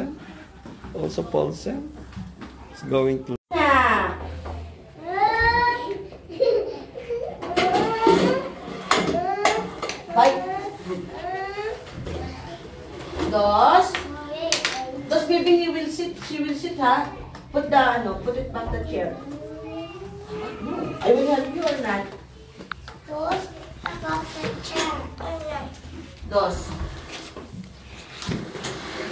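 Young children chatter nearby.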